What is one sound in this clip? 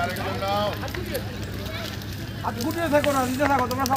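A bonfire roars and crackles.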